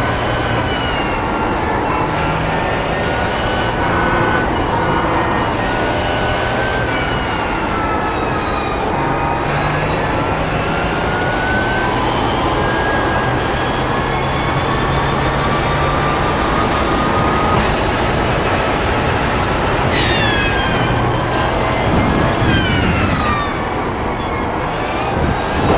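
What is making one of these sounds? A racing car engine roars loudly, revving up through the gears and dropping sharply when braking.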